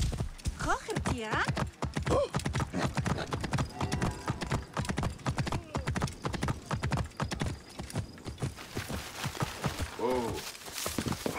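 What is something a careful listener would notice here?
A horse neighs.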